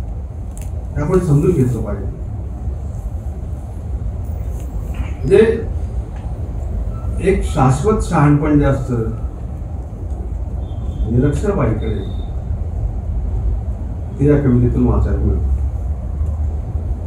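An elderly man speaks slowly with pauses through a microphone.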